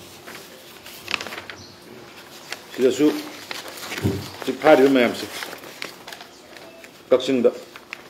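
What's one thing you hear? Paper rustles as a man handles sheets.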